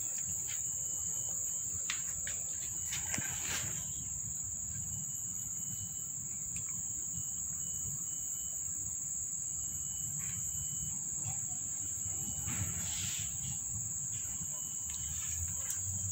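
A cat purrs steadily close by.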